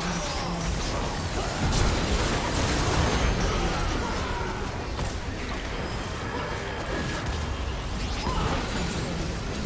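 Fantasy battle game sound effects clash, with spell blasts and weapon hits.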